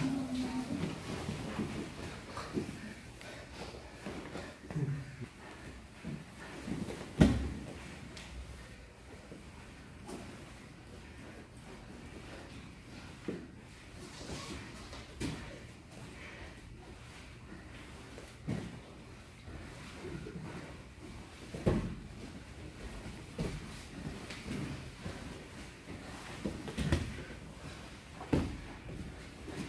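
Bodies thump and slap against a padded floor.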